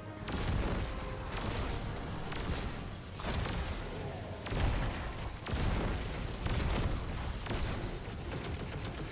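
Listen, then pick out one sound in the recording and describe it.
Gunfire rattles rapidly throughout.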